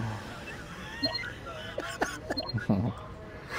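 A control panel chirps with short electronic beeps as it is touched.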